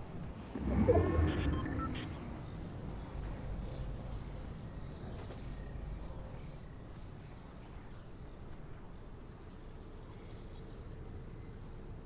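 Video game footsteps run across grass.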